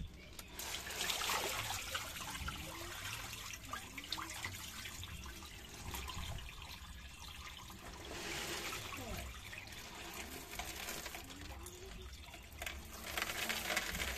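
Gravel shifts and rattles inside a plastic tub.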